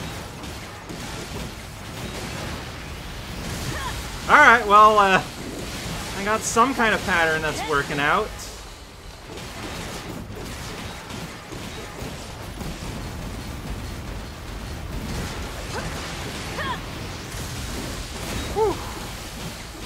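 Blades clang against metal.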